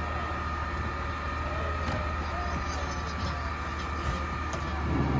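A garbage truck engine idles with a steady low rumble.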